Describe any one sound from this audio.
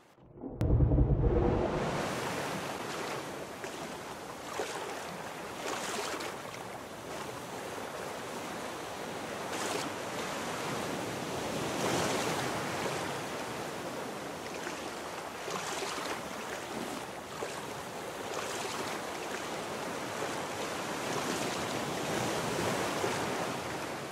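Water splashes in steady surges as someone swims.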